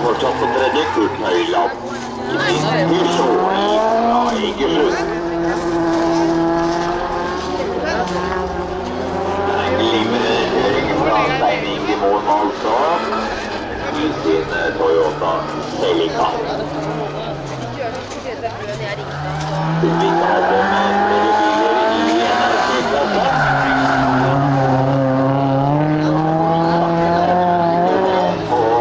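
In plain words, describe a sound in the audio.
Race car engines roar and rev hard, rising and falling as they shift and slide through corners.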